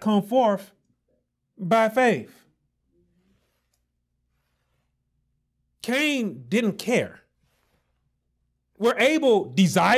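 A man speaks emphatically into a close microphone, with long pauses.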